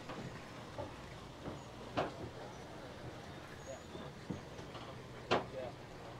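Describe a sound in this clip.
Footsteps thud on a wooden dock.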